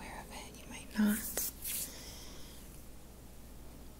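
Hands rub together close to a microphone.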